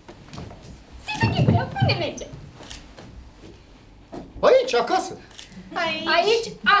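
A woman speaks expressively, heard through a microphone.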